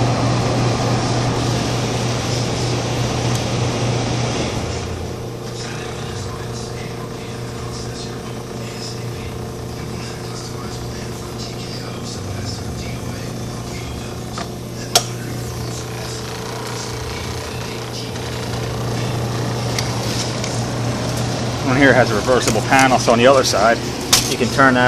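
An appliance hums steadily nearby.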